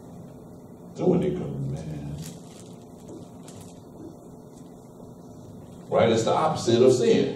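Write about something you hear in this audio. A man speaks calmly in a room, a little way off.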